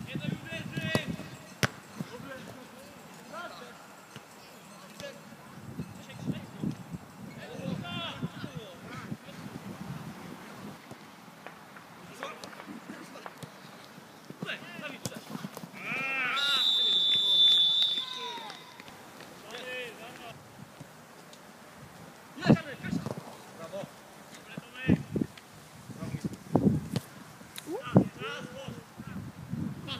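Young men shout and call out to each other across an open pitch.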